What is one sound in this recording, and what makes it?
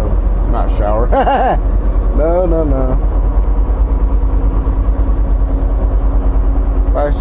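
Tyres hum on a highway.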